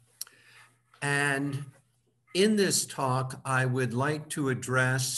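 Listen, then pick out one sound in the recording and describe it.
A man speaks calmly through an online call microphone.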